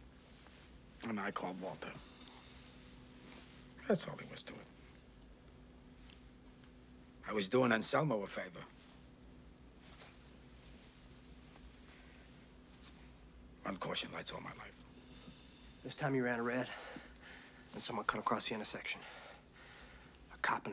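A man speaks quietly and calmly in short phrases, close by, with pauses between them.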